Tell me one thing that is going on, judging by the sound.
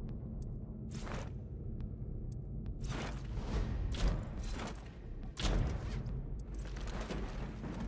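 Short game menu clicks and whooshes sound as options are selected.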